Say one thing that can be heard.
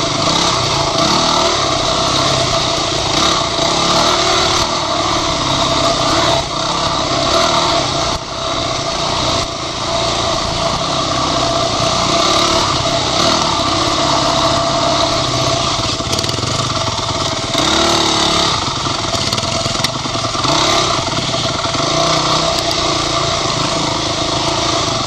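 A dirt bike engine revs loudly up close, rising and falling as the rider shifts.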